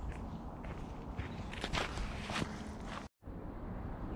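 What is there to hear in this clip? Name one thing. Boots tread on a dirt path strewn with dry leaves.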